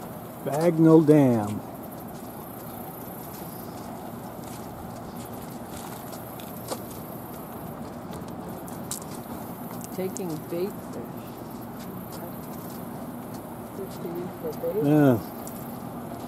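A young woman speaks briefly nearby.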